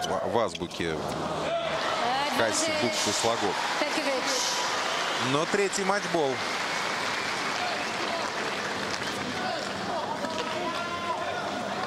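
A large crowd applauds and cheers in a stadium.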